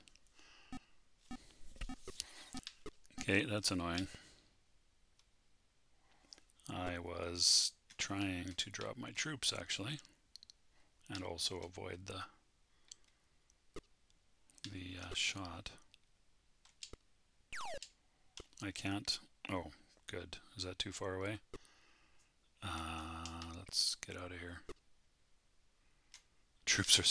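A middle-aged man talks calmly into a close microphone, in short bursts.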